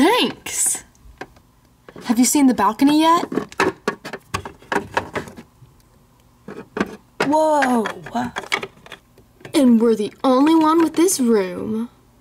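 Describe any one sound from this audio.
Small plastic toys tap lightly on a hard surface.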